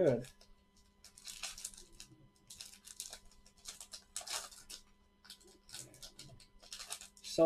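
A foil card wrapper crinkles and tears as it is pulled open.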